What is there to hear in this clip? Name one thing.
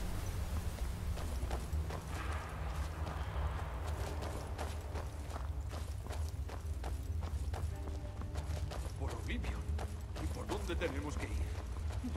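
Footsteps scuff and tap on a stone floor.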